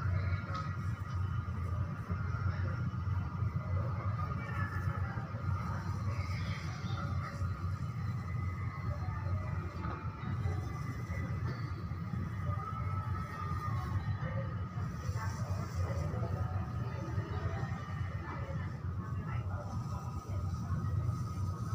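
A hand tool scrapes lightly against a wall.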